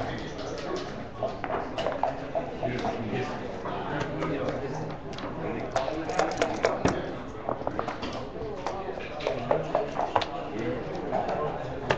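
Backgammon checkers click and clack as they are moved on a wooden board.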